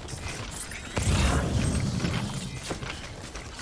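A deep electronic pulse booms and fades.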